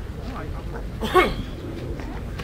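A young man grunts loudly nearby.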